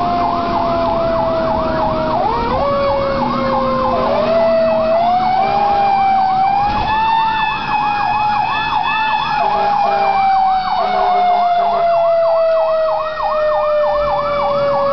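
A bus engine hums and whines steadily from inside the bus, rising and falling slowly in pitch.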